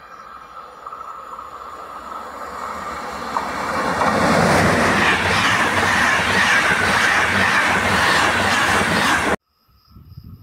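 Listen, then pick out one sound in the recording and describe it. An electric passenger train passes close by at speed.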